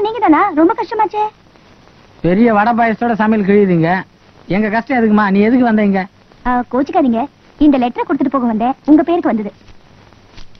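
A woman speaks with feeling, close by.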